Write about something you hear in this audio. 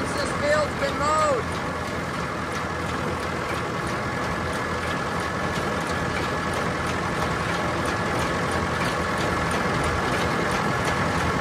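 A tractor-drawn haybine clatters as it cuts through tall grass.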